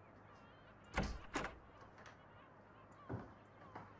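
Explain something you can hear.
A door handle clicks as a door opens.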